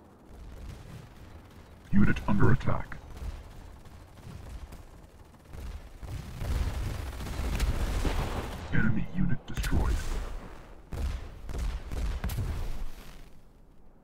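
Laser guns fire rapidly in a game battle.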